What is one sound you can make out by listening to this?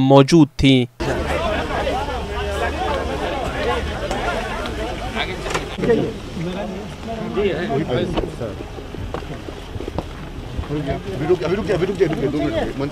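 A crowd of men chatters and murmurs nearby.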